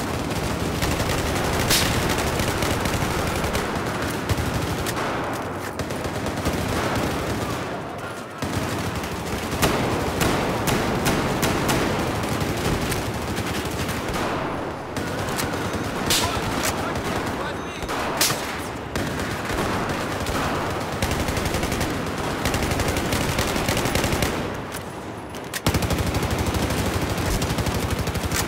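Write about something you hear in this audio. Rapid gunfire rattles and echoes.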